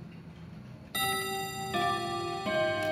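A clock chimes with ringing bell tones.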